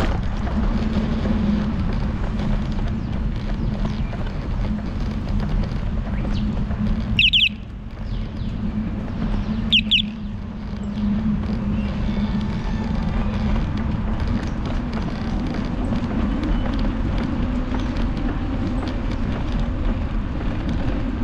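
Small tyres roll over a paved path with a low hum.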